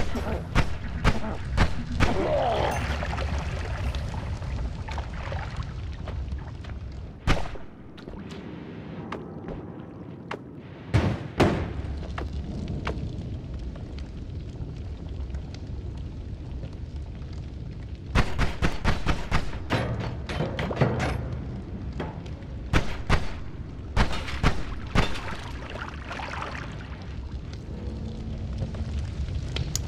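Small explosions and shots pop and crackle repeatedly.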